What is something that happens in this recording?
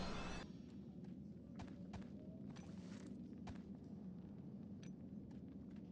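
Sword blows strike in a quick series of hits.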